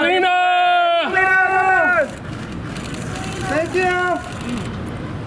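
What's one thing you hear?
A man calls out loudly nearby, in long drawn-out shouts.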